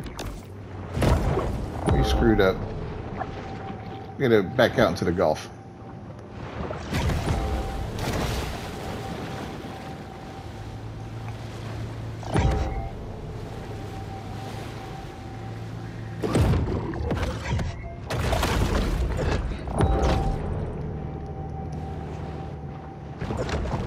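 Water splashes and swirls as a large creature swims through it.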